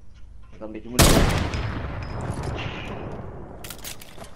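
A sniper rifle fires a single loud shot that echoes away.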